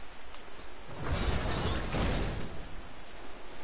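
A heavy gate slides down with a rumbling scrape.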